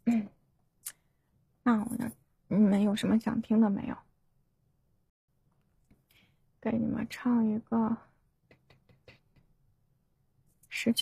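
A young woman talks with animation into a microphone, heard over an online call.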